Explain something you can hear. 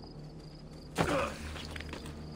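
A heavy thud lands on stone.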